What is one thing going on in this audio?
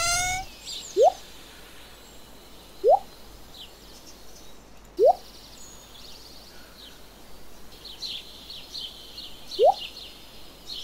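Short rising blips sound as items in a game menu are picked.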